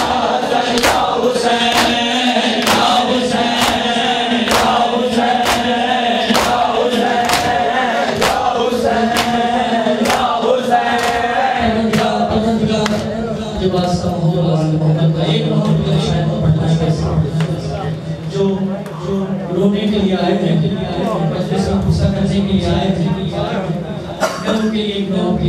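A man chants loudly through a microphone and loudspeakers.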